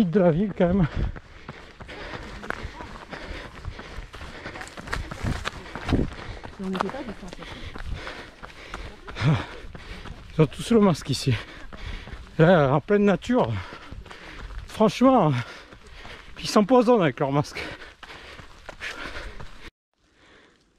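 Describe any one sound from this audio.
Footsteps crunch on a path.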